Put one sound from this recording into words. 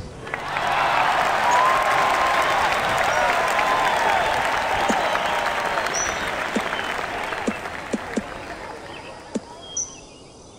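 A golf ball flies with a loud fizzing, whooshing hiss that slowly fades.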